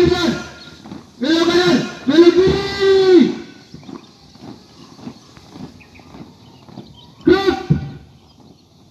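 A man shouts marching commands loudly outdoors.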